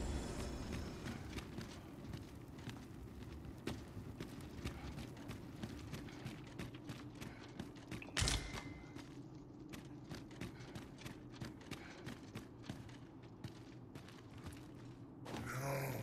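Armoured footsteps clank steadily on a stone floor.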